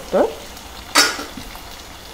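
A metal lid clatters down onto a stove.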